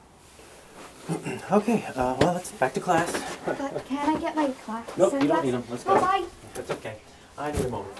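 A young girl talks and laughs with animation nearby.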